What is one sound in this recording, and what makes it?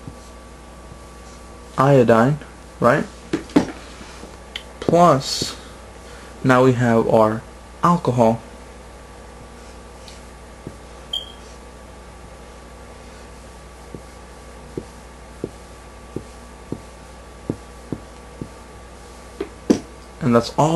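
A felt-tip marker squeaks and scratches across paper.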